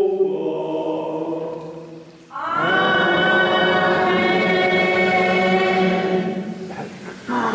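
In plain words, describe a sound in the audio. An elderly man sings a chant through a microphone in a large echoing hall.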